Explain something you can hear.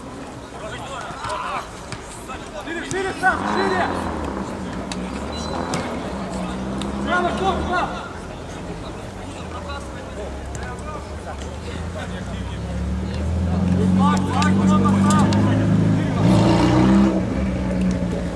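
Men shout to each other outdoors.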